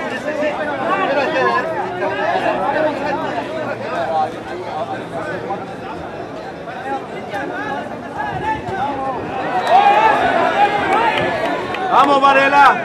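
Boxing gloves thud against a body in quick punches.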